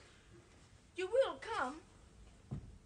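A child speaks.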